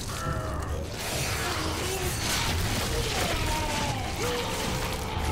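Flesh tears with a wet, squelching rip.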